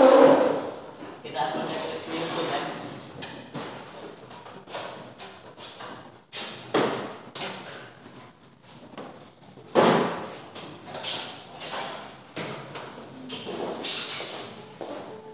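Small tools click and tap against a plastic panel.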